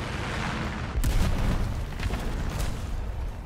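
A tank's shells explode with loud booming blasts.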